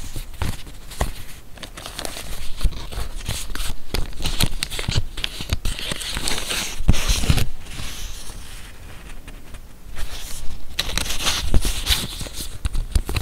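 Paper rustles and crinkles as hands handle it close by.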